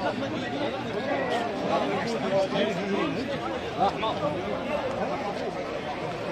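A large crowd of men and women chatters loudly all around, outdoors.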